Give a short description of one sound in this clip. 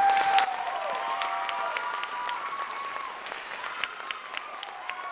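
A concert band plays sustained chords in a large hall.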